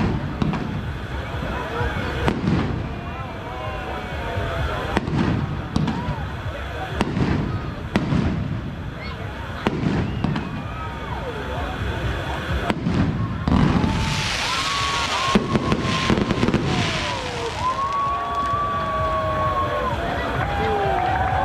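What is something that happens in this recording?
Fireworks rockets whistle as they climb.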